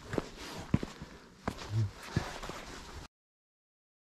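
Footsteps crunch on frosty leaves and gravel.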